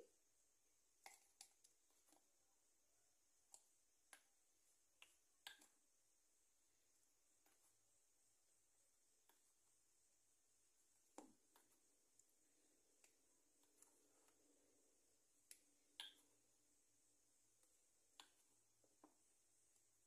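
A spoon scrapes and taps softly in a small jar.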